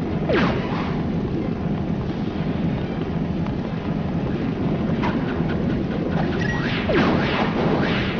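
Video game music plays with game sound effects.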